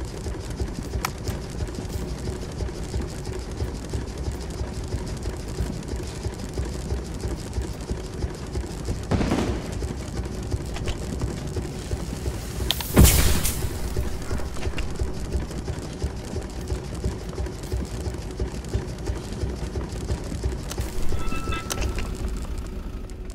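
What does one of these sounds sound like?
A vehicle's engine hums low and steady.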